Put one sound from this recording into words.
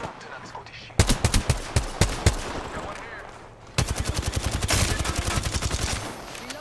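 An automatic rifle fires in short, rapid bursts.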